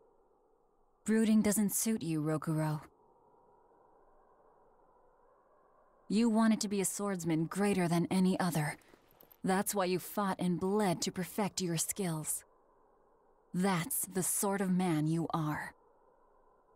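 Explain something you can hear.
A young man speaks calmly and close.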